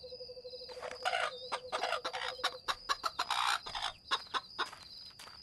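Chickens cluck nearby.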